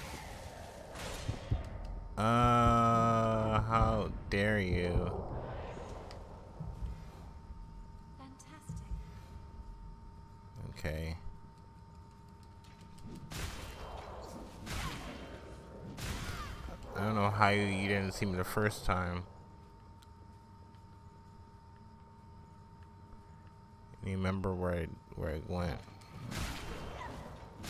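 Weapons slash and strike in a fight.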